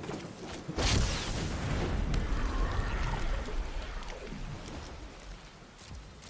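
A deep rumbling effect swells and slowly fades.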